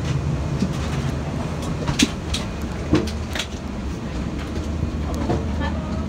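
A steady low engine drone fills an aircraft cabin.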